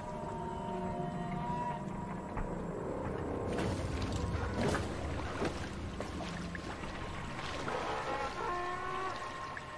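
Oars splash softly as a small boat is rowed through icy water.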